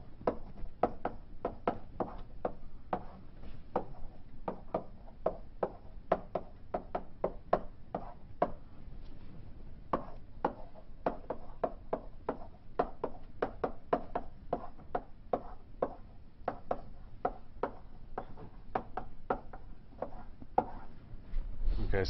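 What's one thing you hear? Chalk taps and clicks rapidly on a blackboard.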